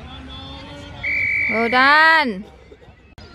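A referee blows a whistle sharply outdoors.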